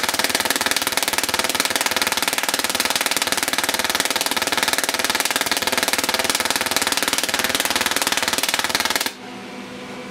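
Electric sparks crackle and buzz loudly and steadily.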